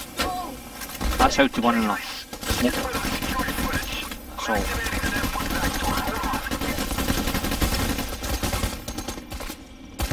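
Rapid gunfire rattles and echoes.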